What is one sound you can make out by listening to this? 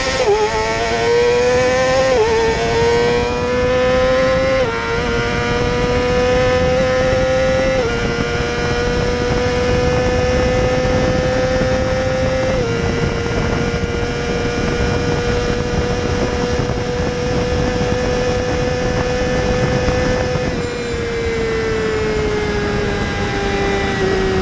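Wind roars past loudly.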